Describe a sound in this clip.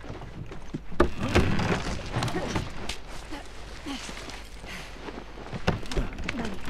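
Hands thump and scrape against a ledge during a climb.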